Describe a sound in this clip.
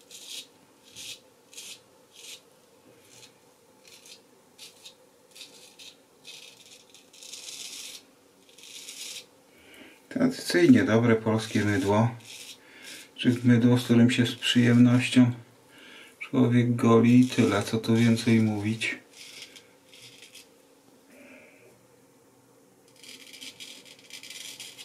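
A razor blade scrapes through stubble in short strokes.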